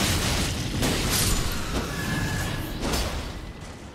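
A large winged creature screeches.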